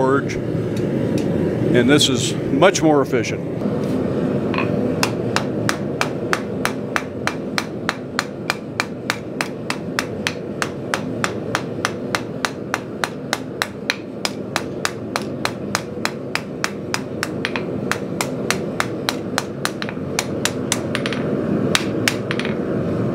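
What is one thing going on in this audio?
A gas forge roars steadily.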